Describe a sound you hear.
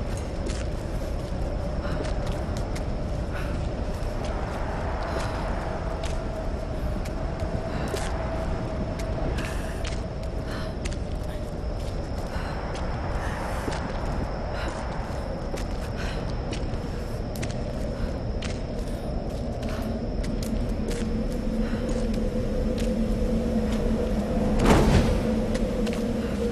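Footsteps crunch steadily on a stone floor.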